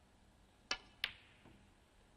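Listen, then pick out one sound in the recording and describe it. Snooker balls clack together.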